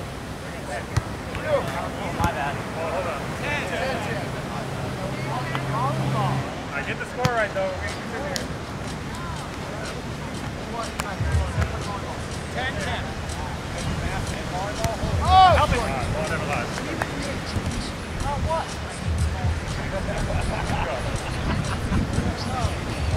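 A volleyball thumps off hands and arms now and then.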